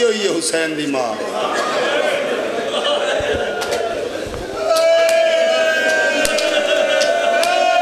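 A crowd of men chants along in response.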